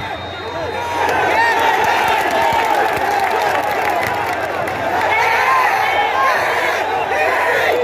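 Fans nearby cheer and shout with excitement.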